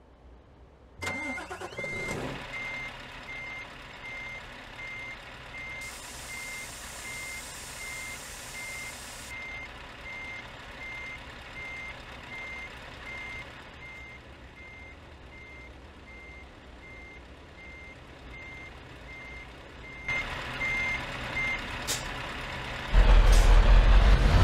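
A truck engine starts up and idles with a low, steady rumble.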